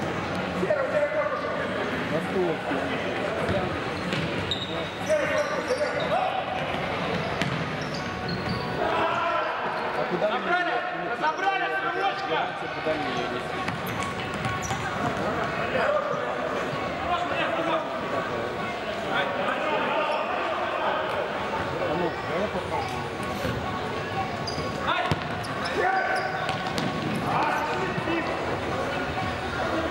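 Men shout to each other in an echoing hall.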